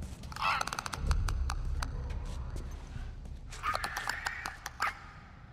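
A creature makes rapid, rasping clicks and gurgles nearby.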